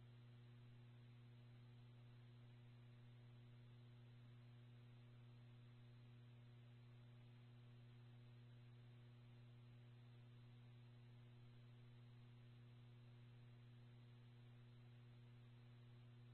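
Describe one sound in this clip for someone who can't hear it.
A radio scanner stream hisses with steady static and a low hum.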